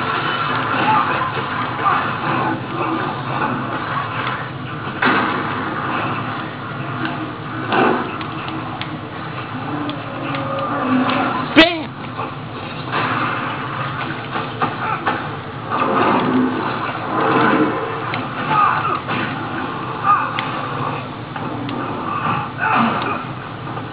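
A game console's cooling fan whirs steadily.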